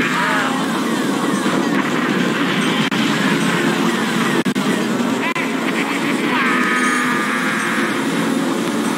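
Short chirping game sound effects rise and fall in pitch.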